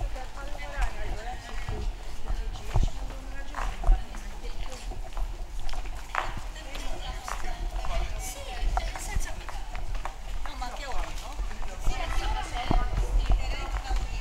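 Several young men talk and call out loudly nearby outdoors.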